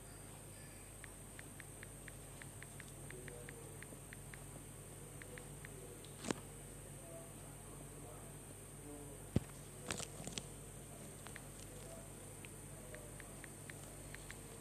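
Soft keyboard clicks tap quickly on a phone.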